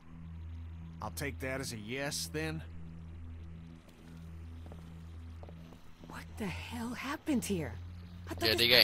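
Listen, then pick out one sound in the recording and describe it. A man speaks in a worried, hushed voice.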